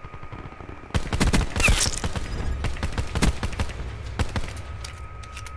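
A gun fires a rapid burst of sharp shots.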